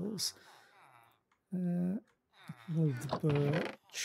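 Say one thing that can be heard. A wooden chest lid thuds shut.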